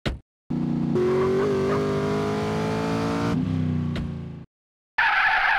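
A car engine idles and revs.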